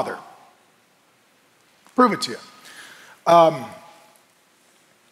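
A man speaks emphatically through a microphone, in short bursts with pauses.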